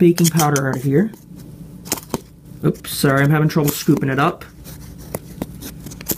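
A metal spoon scrapes and clinks inside a tin can.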